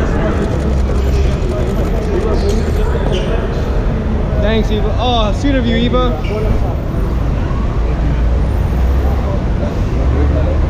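Several men call out with animation in a crowd, close by.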